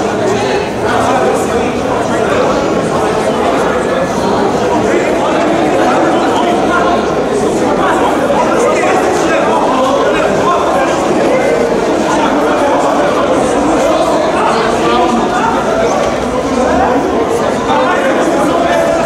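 A crowd of young players chatters and shouts in a large echoing hall.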